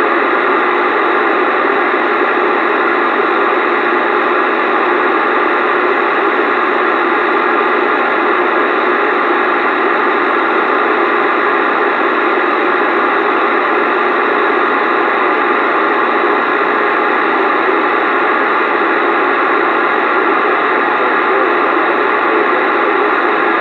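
A radio receiver hisses with steady static through its loudspeaker.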